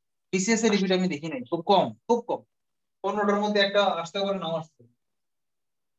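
A man speaks calmly, close by, explaining.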